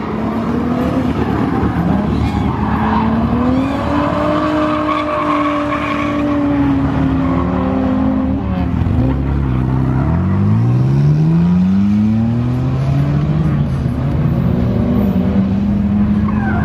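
Tyres screech on pavement as a car drifts.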